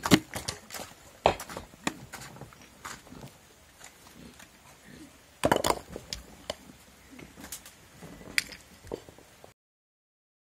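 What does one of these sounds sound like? Loose soil and stones scrape and thud as they are scooped up and passed by hand.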